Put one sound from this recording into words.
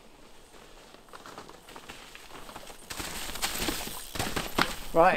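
Bike tyres roll and rattle over a rocky trail.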